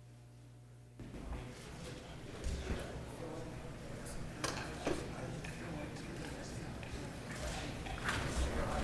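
A crowd of people murmurs and chatters.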